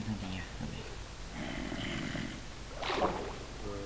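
Water splashes as something plunges in.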